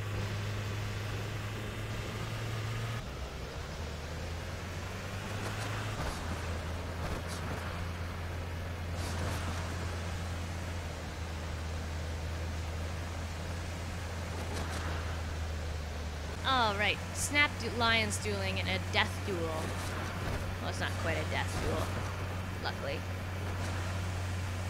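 A small off-road vehicle's engine hums steadily as it drives over rough ground.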